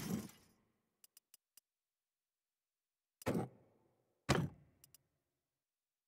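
Soft clicks sound quickly in a row.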